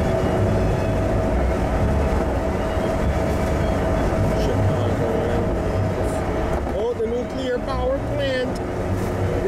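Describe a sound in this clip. Wind rushes past the car.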